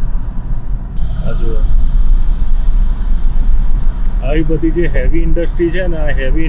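A car's engine and tyres rumble low and steadily from inside the car.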